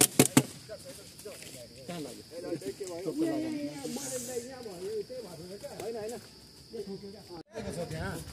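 Several young men talk quietly nearby.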